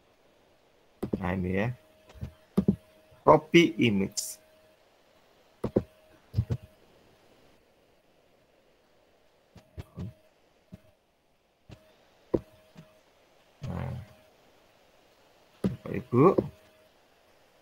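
A young man speaks calmly in short bursts over an online call.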